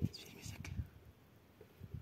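A stick scrapes and taps on stony ground.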